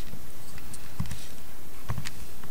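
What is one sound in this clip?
Calculator buttons click as they are pressed.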